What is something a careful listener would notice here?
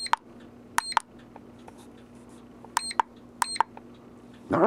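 An electronic device beeps briefly as its buttons are pressed.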